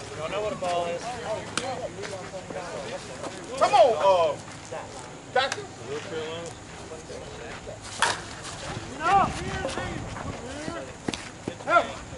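Men shout and call out outdoors across an open field.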